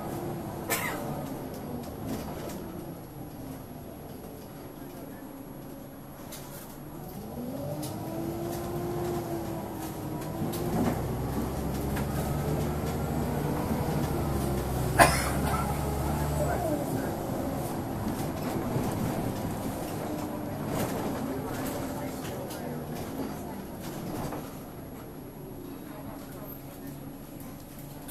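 A bus rattles and clunks over the road.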